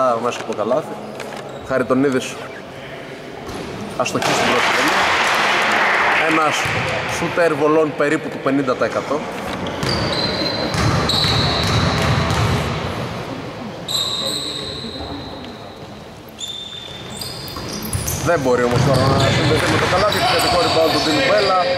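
A basketball bounces on the hard floor.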